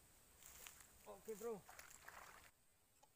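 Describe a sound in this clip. A fishing reel whirs briefly.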